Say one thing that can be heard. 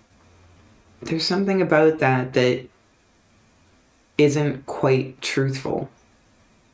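A person speaks calmly and close to a microphone, in short phrases.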